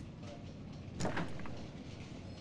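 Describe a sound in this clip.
A door thuds.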